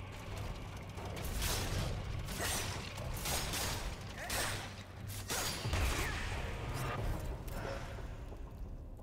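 Blades clash and strike loudly in a fight.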